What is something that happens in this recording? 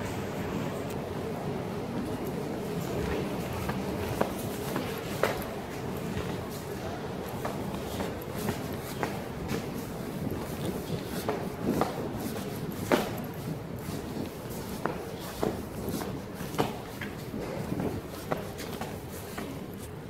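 Footsteps climb stone stairs at a steady pace, echoing.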